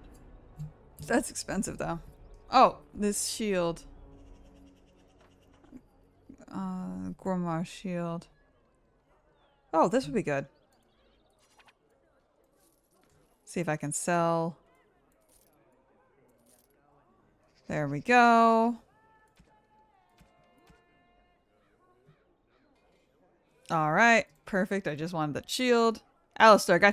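A woman speaks with animation close to a microphone, in short bursts.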